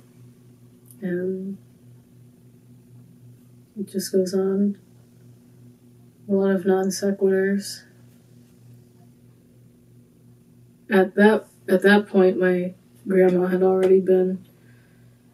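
A young woman sings softly and close up, in short phrases with pauses between them.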